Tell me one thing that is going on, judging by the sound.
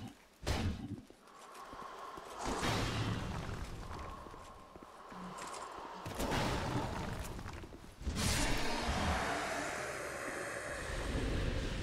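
Heavy metal weapons clash and strike in a fight.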